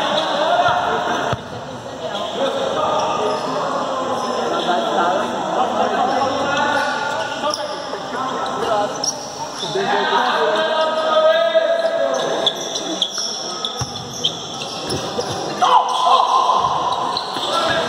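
A ball thuds against the floor as players kick it.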